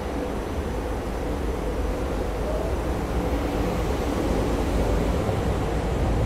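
A train pulls away, its rumble slowly growing louder.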